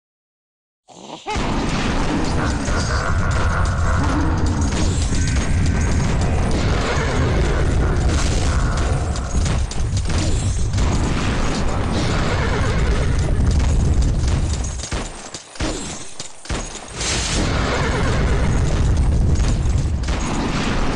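Game laser beams zap and crackle.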